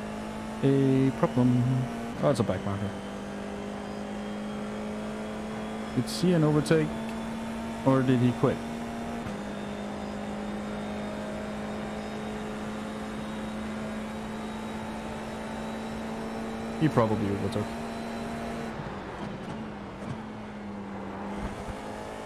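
A racing car engine drones steadily, heard through a game.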